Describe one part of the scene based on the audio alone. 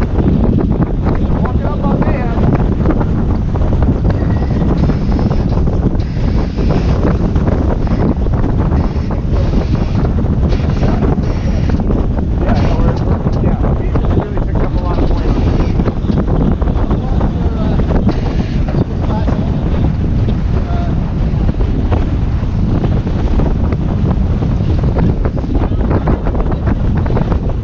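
Strong wind buffets loudly throughout.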